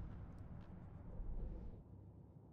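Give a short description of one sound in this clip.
A drawer slides open with a soft thud.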